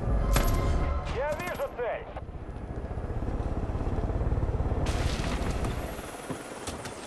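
A helicopter's rotor thunders close by.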